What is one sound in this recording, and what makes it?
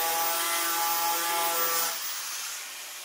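A power sander whines against metal, then cuts off.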